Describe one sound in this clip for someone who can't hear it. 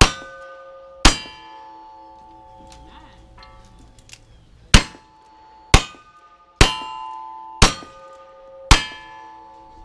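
Gunshots crack sharply, one after another, outdoors.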